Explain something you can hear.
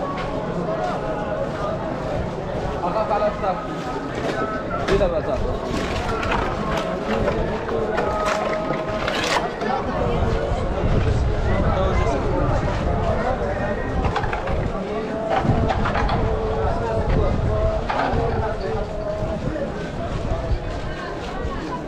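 A crowd of men murmurs and chants outdoors.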